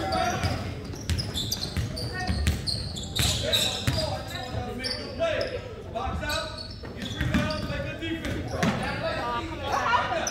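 Young players and spectators shout and call out across the gym.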